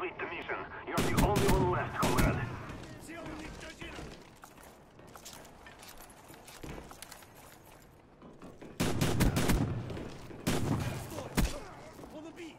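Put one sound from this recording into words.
Rapid gunshots fire in short bursts, close by.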